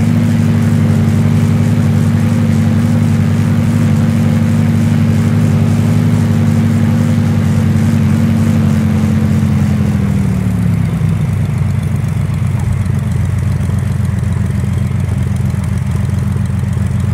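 An aircraft engine drones steadily, then its pitch drops lower.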